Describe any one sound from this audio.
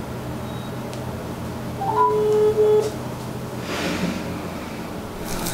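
A middle-aged woman speaks quietly into a telephone.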